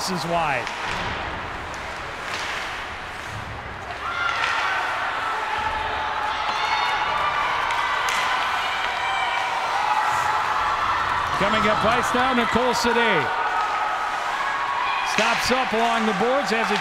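A crowd murmurs and cheers in an echoing rink.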